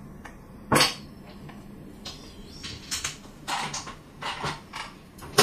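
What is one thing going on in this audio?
Plastic tiles clack and rattle against one another on a table.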